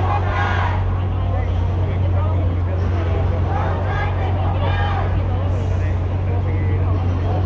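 A crowd of people chatters outdoors on a busy street.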